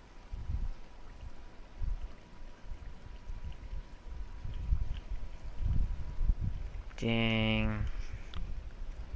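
Water splashes and laps as a swimmer paddles through it.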